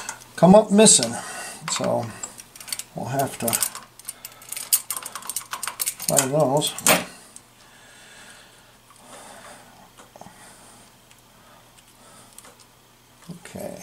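Small metal engine parts click and scrape under fingers.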